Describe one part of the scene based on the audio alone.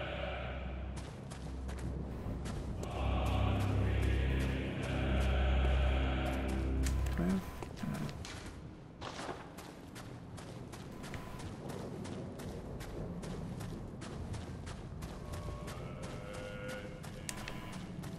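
Footsteps clatter on stone.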